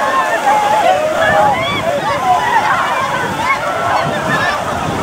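Many feet splash through shallow water.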